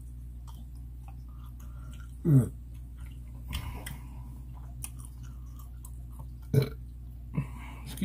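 A woman chews food with soft smacking sounds.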